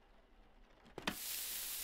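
A sandwich toaster starts to sizzle.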